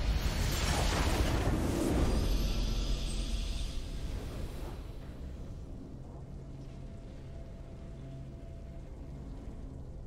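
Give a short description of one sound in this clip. A triumphant fanfare swells and then fades.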